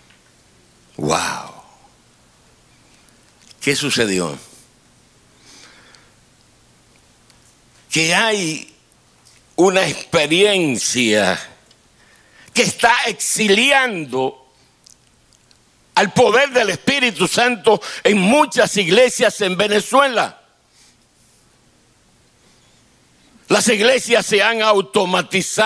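An elderly man preaches with animation through a microphone, in bursts with pauses.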